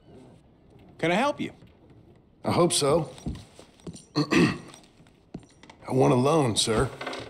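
A man answers calmly, close by.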